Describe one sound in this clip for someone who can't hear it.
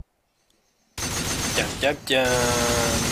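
Gunshots crack in quick succession.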